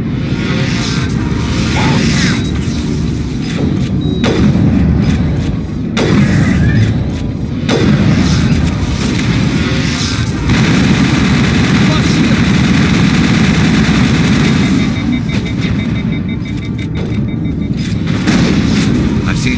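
Electric blasts crackle and burst loudly.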